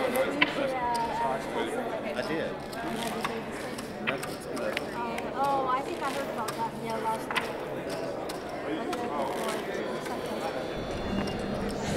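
A crowd murmurs in a large room.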